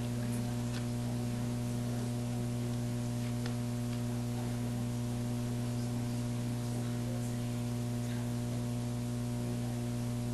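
Pens scratch on paper.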